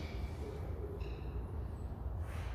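A brass band plays a faint note in an echoing hall.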